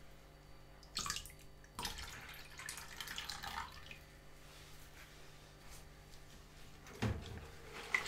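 A glass clinks against a sink.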